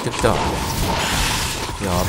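Magic crackles and whooshes in bursts.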